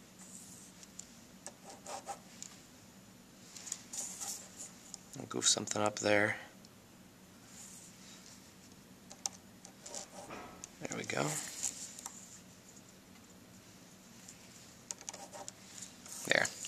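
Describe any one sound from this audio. A plastic drawing tool clicks and scrapes against paper.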